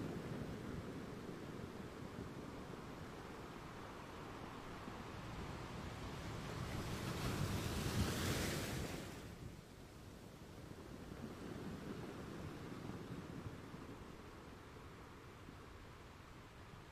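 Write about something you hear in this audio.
Wind blows hard outdoors, rumbling steadily.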